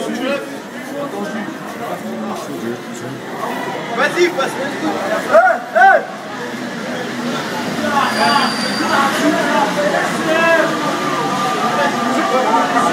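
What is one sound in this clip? A crowd of young adults talks and chatters in an echoing underground station.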